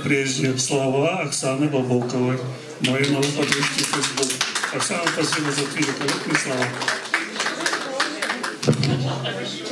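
An elderly man sings into a microphone.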